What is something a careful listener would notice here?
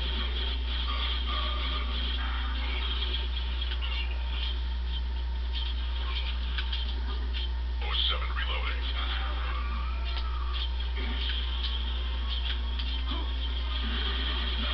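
Gunfire and blaster shots crackle from a game played through a television speaker.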